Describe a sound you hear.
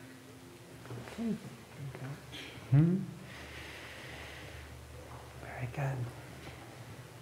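A man speaks quietly in an echoing hall.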